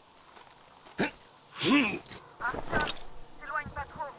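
Wooden planks knock and scrape as someone climbs up.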